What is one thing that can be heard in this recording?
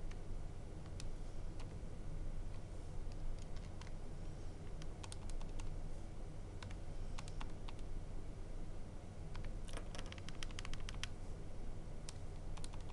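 Calculator keys click softly as a finger presses them.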